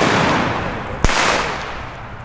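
A firework goes off with a sharp bang.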